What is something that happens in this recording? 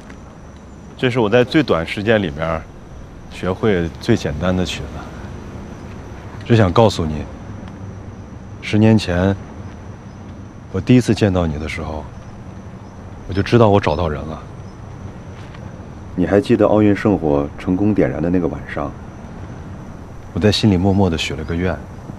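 A young man speaks softly and earnestly, close by.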